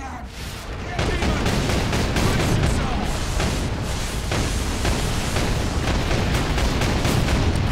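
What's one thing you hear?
A heavy gun fires rapid bursts.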